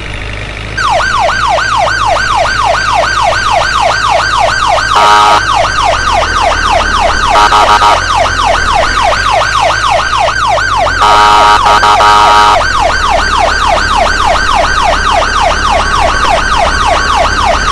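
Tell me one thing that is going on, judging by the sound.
An ambulance siren wails rapidly up and down.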